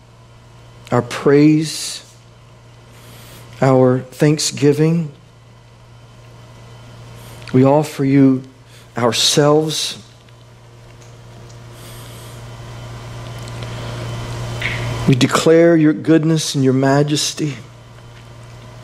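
A man speaks calmly through a microphone in short phrases, with pauses between them.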